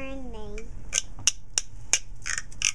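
A small wooden instrument clicks sharply several times.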